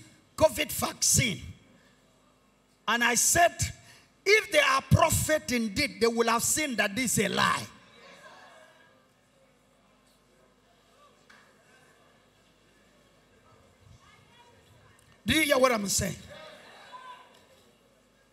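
A man preaches loudly and with passion through a microphone, heard over loudspeakers in a large hall.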